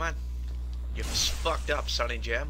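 A sword swings and strikes hard with a sharp impact.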